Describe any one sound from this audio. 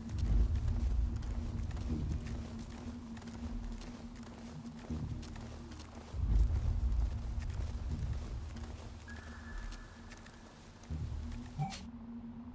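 Heavy footsteps thud on the ground.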